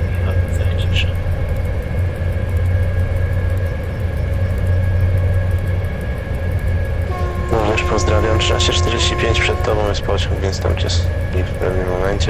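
A train rumbles low and steady.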